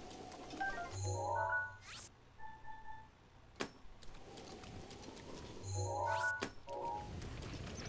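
Short electronic menu chimes sound in quick steps.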